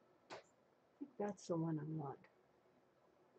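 An older woman speaks briefly and calmly into a microphone.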